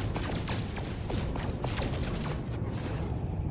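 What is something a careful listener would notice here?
Laser blasts fire in rapid bursts.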